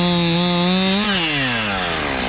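A chainsaw engine winds down to idle.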